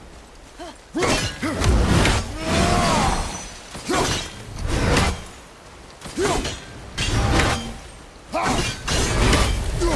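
An axe whooshes through the air again and again.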